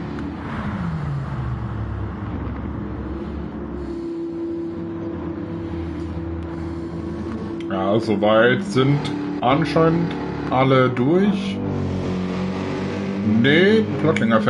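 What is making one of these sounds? A race car engine roars and whines, its pitch rising and falling as it shifts gears.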